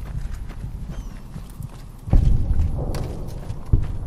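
Footsteps clang on a metal ramp.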